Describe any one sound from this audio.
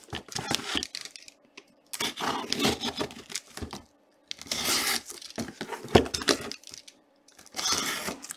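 Plastic wrapping crinkles and rustles under hands.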